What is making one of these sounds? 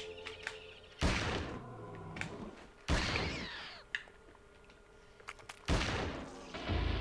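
A revolver fires loud shots in an echoing room.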